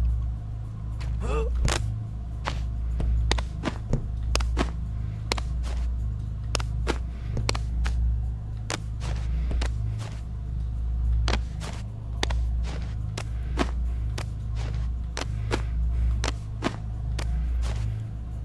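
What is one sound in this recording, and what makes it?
Hands grab and slap onto climbing holds in short, sharp clicks.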